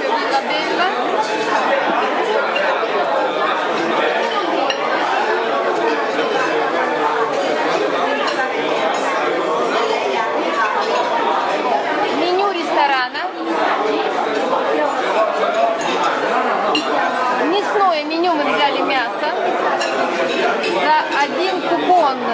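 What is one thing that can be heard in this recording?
Many men and women talk at once nearby, a dense murmur of voices.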